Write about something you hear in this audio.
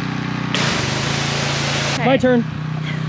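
A pressure washer sprays water with a loud hiss.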